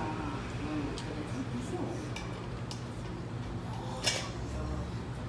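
Chopsticks and tongs clink against dishes.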